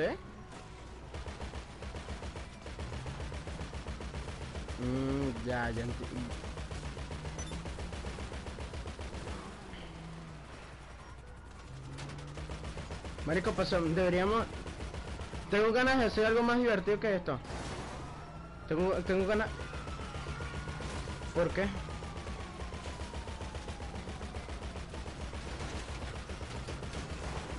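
An armoured vehicle's engine rumbles.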